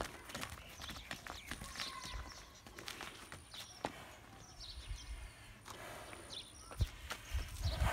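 Footsteps and hooves shuffle on dry dirt.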